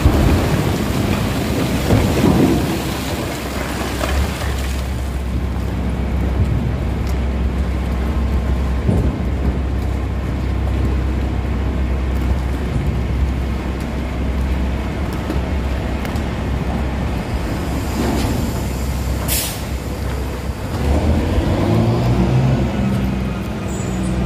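Rocks and dirt rumble and clatter as they tumble down a chute.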